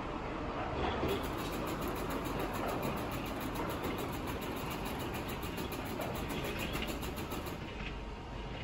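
A split-flap sign clatters rapidly as its flaps turn over.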